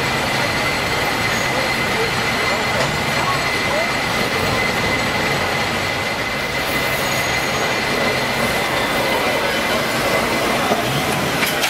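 A cable car rumbles and clatters along its rails.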